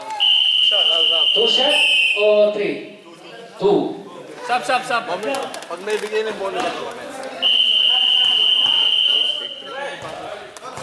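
A referee's whistle blows long and loud in an echoing hall.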